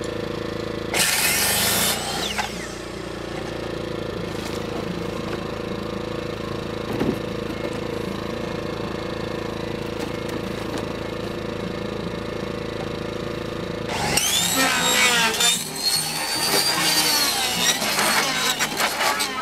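A circular saw whines as it cuts through wood.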